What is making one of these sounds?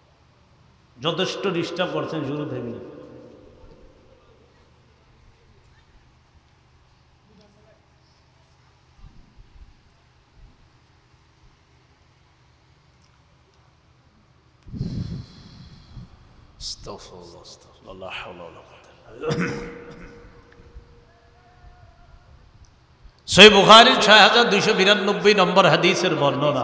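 A man preaches loudly and with feeling into a microphone, heard through loudspeakers in a reverberant space.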